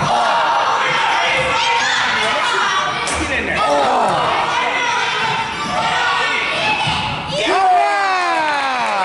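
Children and adults shout and cheer in a large echoing gym.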